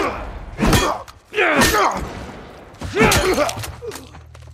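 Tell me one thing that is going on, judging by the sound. Heavy blows land with dull, crunching thuds.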